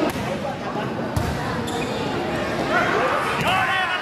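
A volleyball is spiked with a sharp slap.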